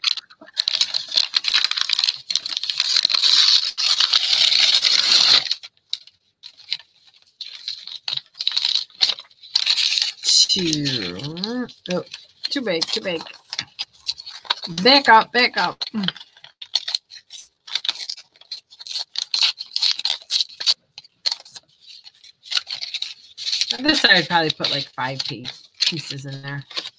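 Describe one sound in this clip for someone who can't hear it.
Paper rustles and crinkles as hands handle it.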